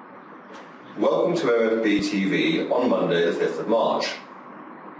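A middle-aged man speaks calmly into a close microphone.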